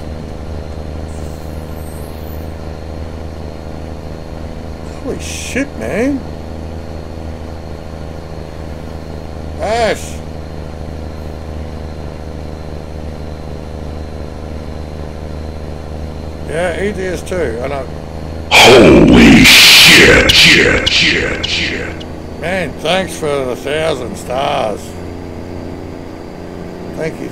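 A truck engine drones steadily and low.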